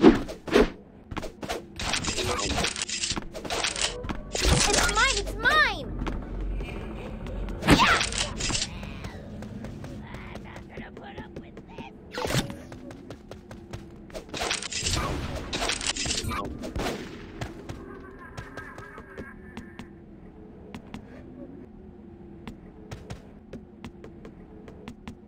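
A sword whooshes through the air in a video game.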